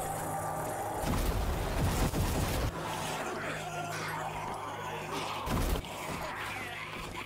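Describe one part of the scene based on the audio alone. A flamethrower roars in bursts.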